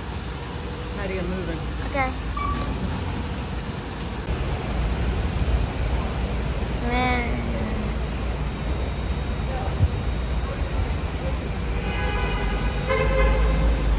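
A shuttle bus engine idles with a low steady rumble.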